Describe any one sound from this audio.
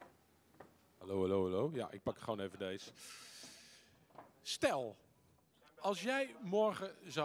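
A middle-aged man speaks calmly into a microphone over a loudspeaker.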